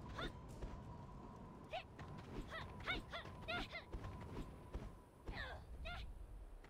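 Footsteps run across stone and grass.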